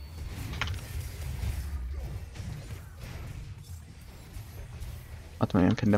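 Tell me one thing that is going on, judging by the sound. Magic spells crackle and burst in a fantasy battle.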